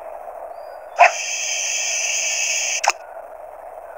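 A shrill electronic whir sounds as a game fishing line is cast.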